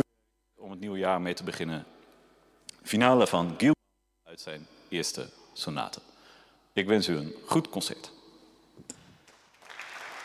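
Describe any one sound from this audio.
A young man speaks calmly into a microphone in a large echoing hall.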